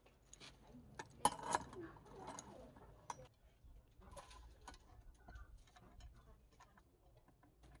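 A small metal vise clicks and scrapes as it is tightened onto a metal disc.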